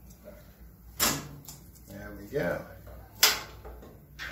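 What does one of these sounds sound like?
A metal bar clanks against metal.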